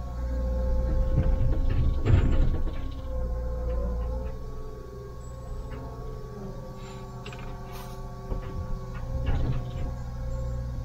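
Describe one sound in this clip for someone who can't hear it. Rocks and soil clatter and thud against a steel bucket.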